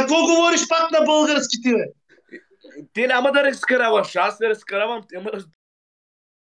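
A man speaks loudly and with animation over an online call.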